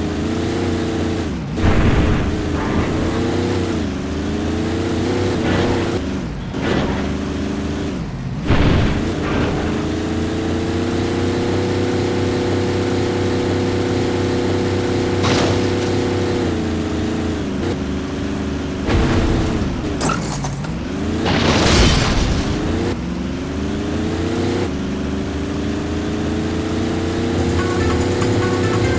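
A car engine revs and drones steadily, rising and falling in pitch as it changes gear.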